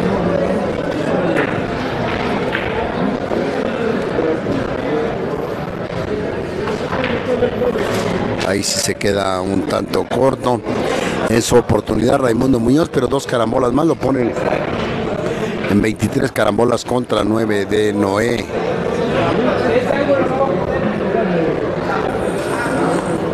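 A crowd of people chatters in a large room.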